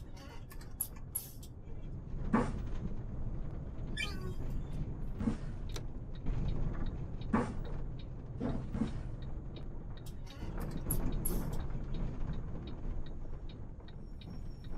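A bus engine rumbles low and steady while driving.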